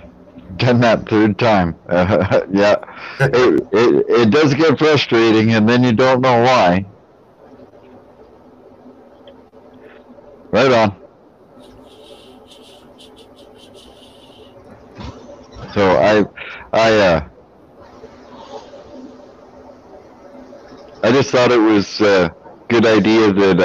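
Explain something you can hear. A middle-aged man talks and laughs over an online call.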